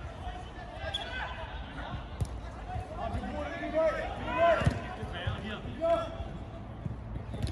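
Men shout and call out from a distance on an outdoor pitch.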